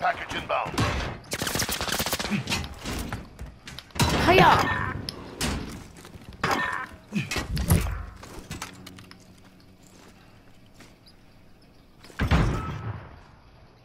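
Gunshots ring out in sharp bursts.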